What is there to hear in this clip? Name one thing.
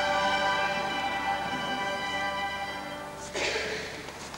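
An orchestra holds a final chord in a large echoing hall.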